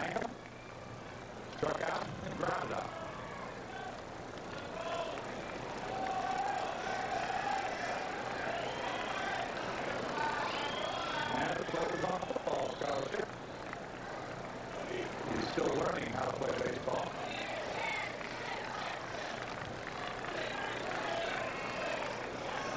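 A large crowd murmurs in the distance.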